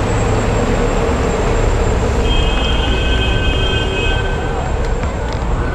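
Wind rushes over a microphone outdoors.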